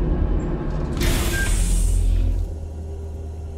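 A sliding door hisses open.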